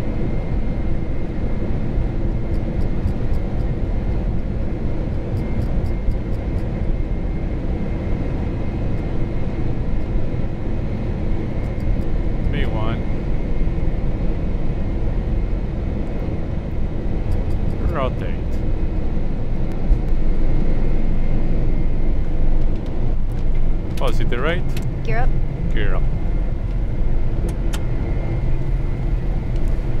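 Jet engines roar steadily.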